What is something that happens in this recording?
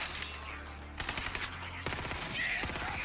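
A gun fires in a rapid burst of shots.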